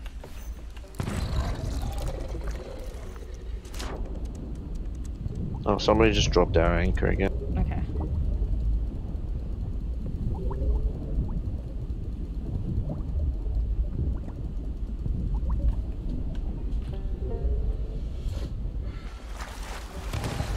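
Water rumbles and churns, muffled as if heard underwater.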